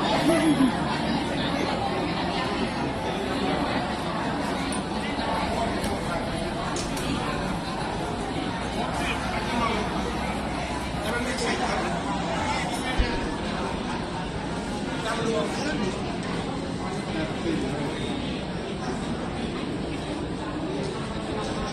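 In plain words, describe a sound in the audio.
A crowd of people murmur and talk in a large echoing hall.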